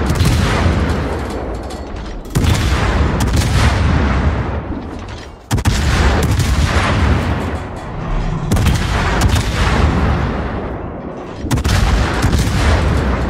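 Heavy naval guns fire in booming salvos that rumble and fade.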